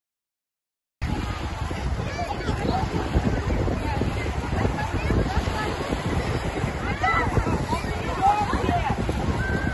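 Small waves wash onto a pebble shore.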